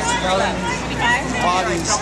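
A woman speaks loudly nearby.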